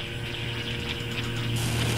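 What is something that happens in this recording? Electric sparks crackle and fizz.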